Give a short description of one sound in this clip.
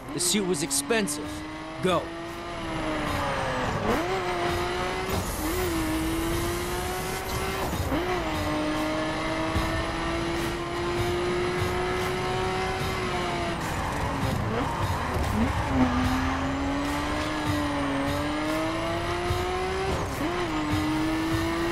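A sports car engine roars and revs as gears shift up and down.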